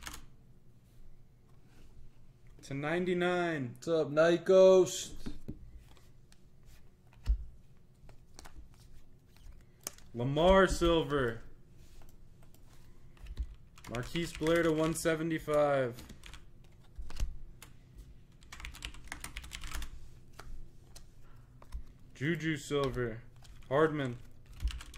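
Trading cards rustle and slide as a hand flips through them.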